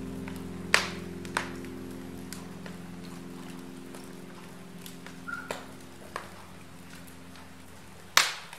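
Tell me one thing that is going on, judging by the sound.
Burning logs crackle and pop in a fire.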